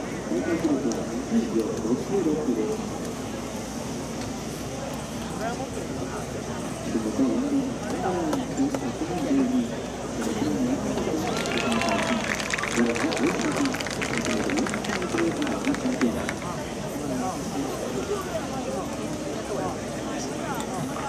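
A crowd of men and women chatters outdoors, some voices close by.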